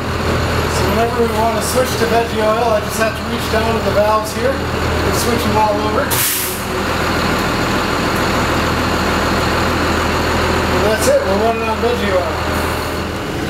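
A man talks casually, close by.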